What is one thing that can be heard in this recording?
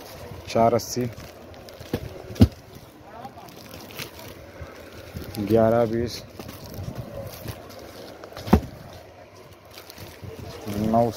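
Plastic wrapping crinkles and rustles as it is handled.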